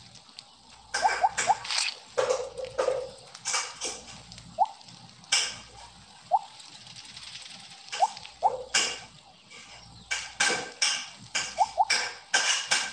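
Short high blips chime now and then.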